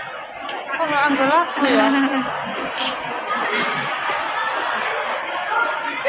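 A crowd of young people chatters and shouts outdoors.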